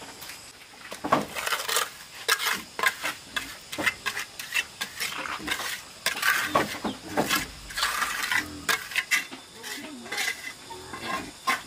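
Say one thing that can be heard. A steel trowel scrapes wet cement mortar against concrete blocks.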